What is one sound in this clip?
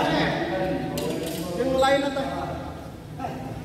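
A man talks with animation in a large echoing hall.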